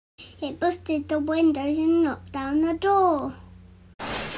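Young children sing together.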